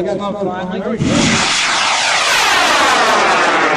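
A model rocket launches with a sudden loud roar.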